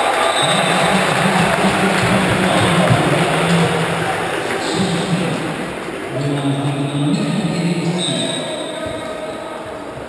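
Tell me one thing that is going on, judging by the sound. Shoes squeak on a hard court floor.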